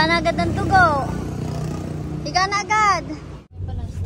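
A young woman speaks in a high, sing-song voice close by.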